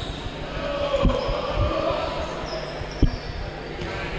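A basketball bounces with dull thuds on a wooden floor.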